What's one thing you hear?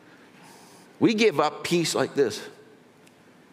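A middle-aged man speaks emphatically through a microphone.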